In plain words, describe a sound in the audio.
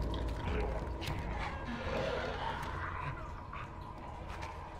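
Small footsteps patter on a tiled floor.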